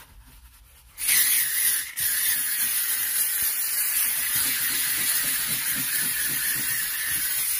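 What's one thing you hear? A steam cleaner hisses loudly and steadily.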